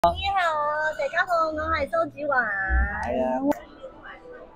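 A young woman speaks brightly and with animation, close by.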